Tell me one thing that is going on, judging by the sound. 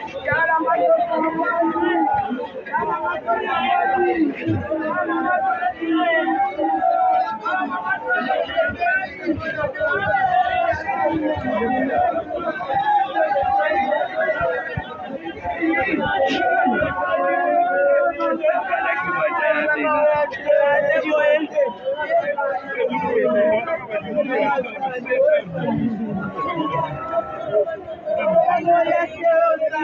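A crowd of men and women talks and shouts nearby outdoors.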